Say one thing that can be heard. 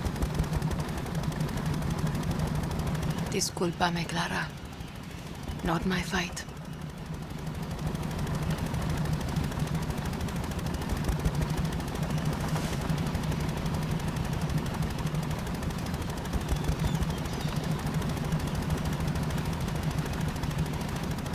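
Water splashes against a moving boat's hull.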